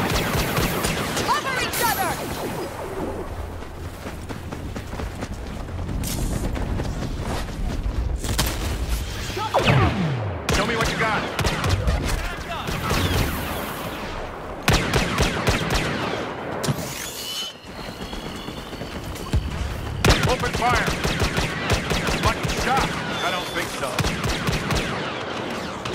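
Laser bolts whizz past.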